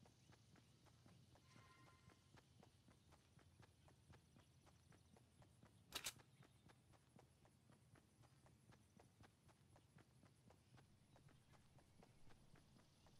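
Footsteps run quickly over grass in a steady rhythm.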